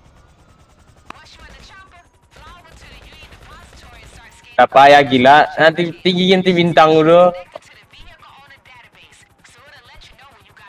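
A helicopter's rotor whirs and chops overhead.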